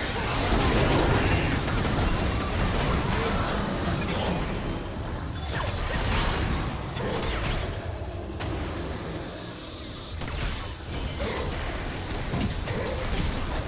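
Spell effects crackle and burst in rapid bursts.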